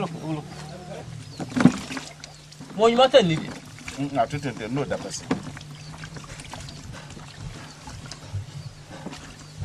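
Water splashes in a basin as hands wash in it.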